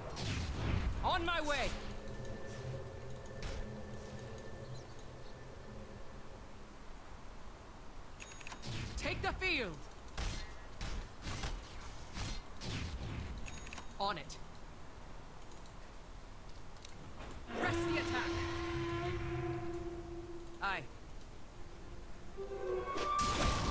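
Video game sound effects whoosh, chime and zap.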